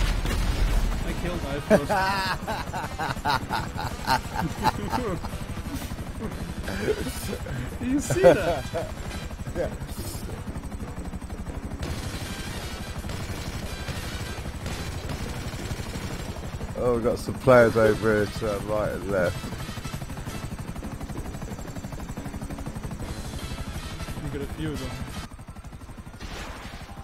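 A helicopter's rotor chops steadily.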